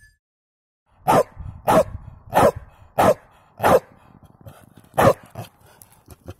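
A small dog barks repeatedly outdoors.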